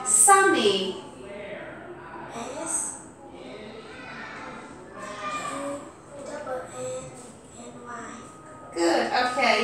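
A girl answers softly into a headset microphone.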